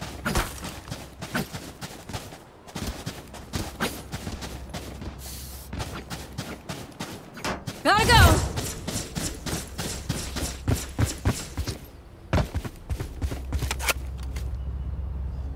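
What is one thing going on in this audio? Footsteps thud quickly on hard ground in a game.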